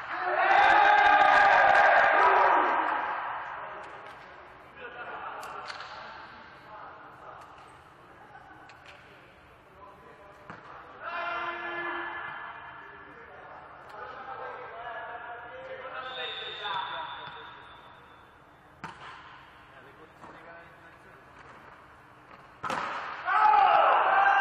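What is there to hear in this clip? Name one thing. Men shout loudly to each other in a large echoing hall.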